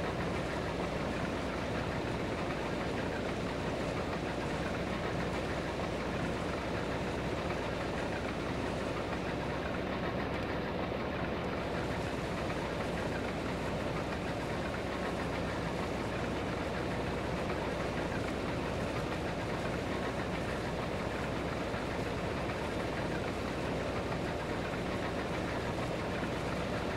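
A harvester reel and cutter rumble and clatter through the crop.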